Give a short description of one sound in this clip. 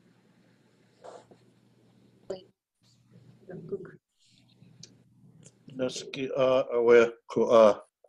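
A man speaks slowly through an online call microphone, pausing between phrases.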